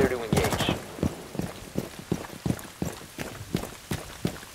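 Footsteps tread quickly on hard ground.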